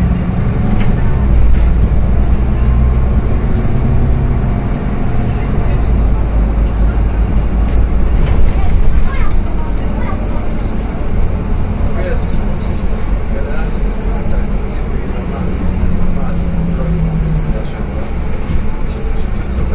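A bus engine hums and rumbles steadily from inside the vehicle.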